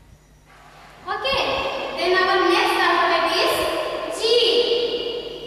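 A woman sings loudly and brightly, close by.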